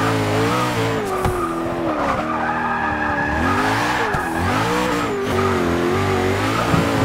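A twin-turbo V8 supercar engine revs hard and shifts through the gears.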